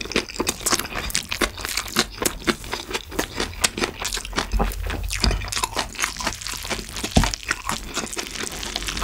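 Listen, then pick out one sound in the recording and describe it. A young man chews food wetly and loudly, close to a microphone.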